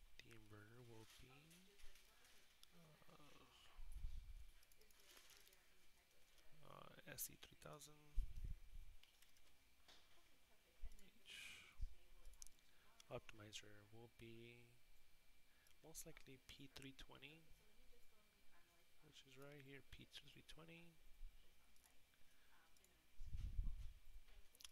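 A young man talks calmly into a headset microphone, heard close.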